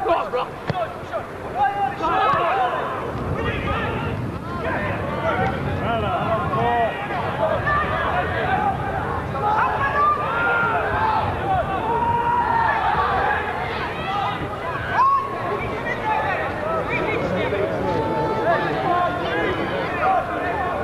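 A football crowd chatters and calls out outdoors.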